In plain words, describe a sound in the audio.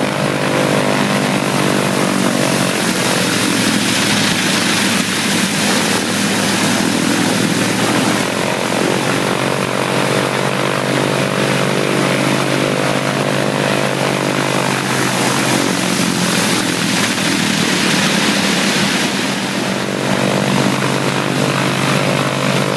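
Two propeller engines of an aircraft idle close by with a loud, steady, throbbing roar.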